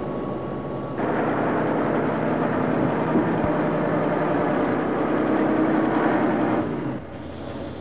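A truck rolls loudly along a road.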